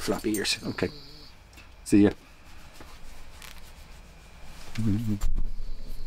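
An older man speaks in short bursts, close by.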